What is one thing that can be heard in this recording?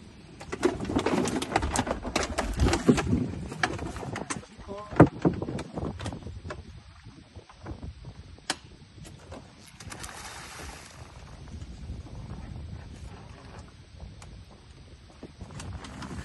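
Fish splash and thrash at the water's surface beside a boat.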